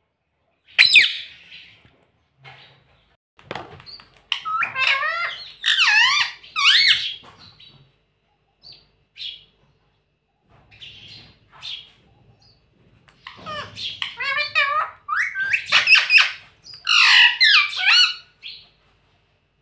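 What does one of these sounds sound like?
A parrot squawks and chatters loudly up close.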